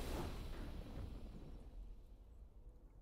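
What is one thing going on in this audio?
A triumphant game fanfare rings out and slowly fades.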